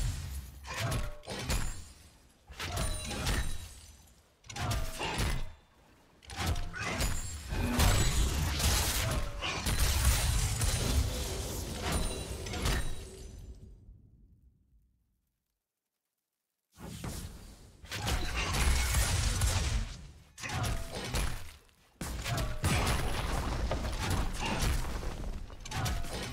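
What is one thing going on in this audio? Fighting sound effects from a video game clash and crackle in bursts.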